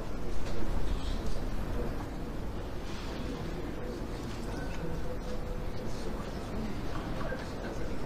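A crowd of adults murmurs and chats in a large hall.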